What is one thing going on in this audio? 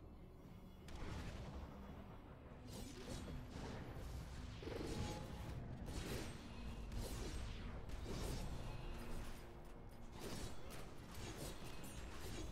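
Quick game attack sounds zap and hit during a second fight.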